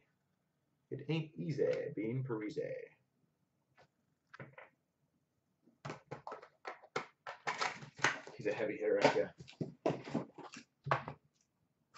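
Plastic card holders tap and rustle as they are handled.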